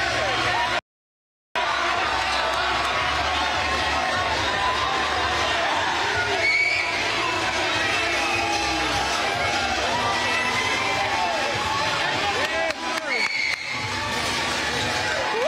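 A large crowd of young people cheers and shouts loudly in an echoing hall.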